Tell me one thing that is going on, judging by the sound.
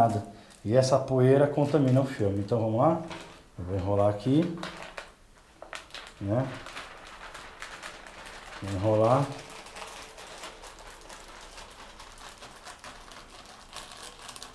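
Thin plastic film crinkles and rustles under handling.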